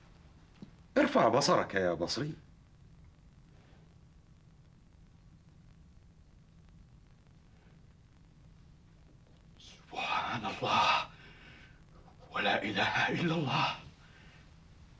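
An elderly man speaks calmly and slowly, with long pauses.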